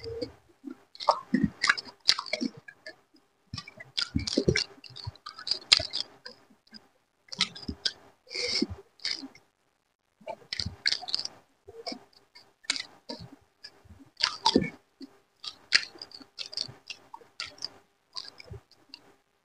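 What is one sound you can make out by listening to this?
Fingers squish and mix wet rice on a metal plate.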